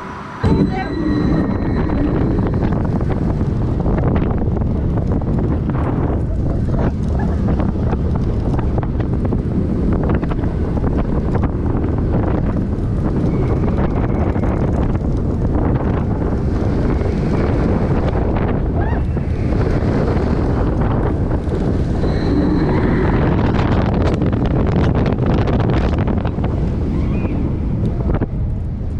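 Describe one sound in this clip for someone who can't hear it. A roller coaster train rumbles and rattles along its track.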